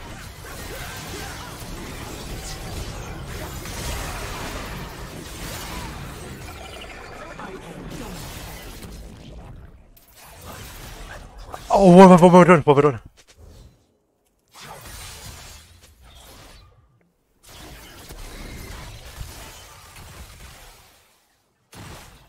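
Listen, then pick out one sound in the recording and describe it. Video game combat effects clash and zap.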